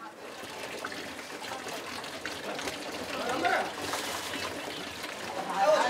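Water trickles from a tap into a container.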